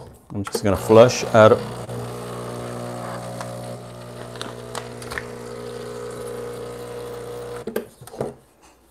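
A coffee grinder whirs steadily.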